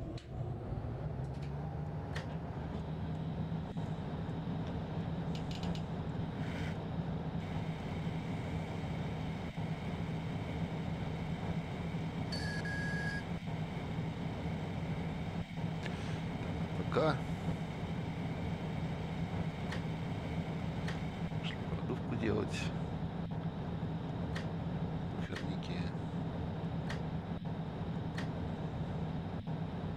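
A locomotive engine hums steadily inside the cab.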